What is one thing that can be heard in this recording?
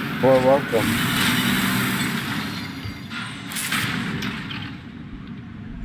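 Machines clash and explode with loud bangs.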